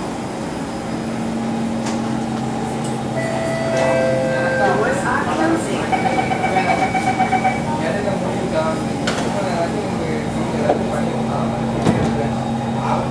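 A train's motor hums steadily as the train pulls away.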